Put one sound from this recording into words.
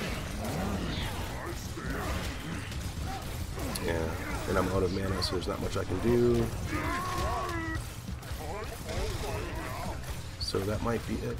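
Magic blasts crackle and thud in a fight.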